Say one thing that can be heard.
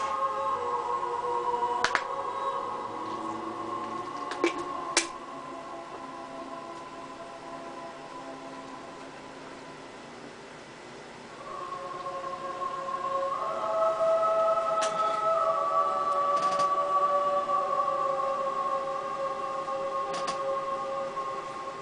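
Soft game music plays through a loudspeaker.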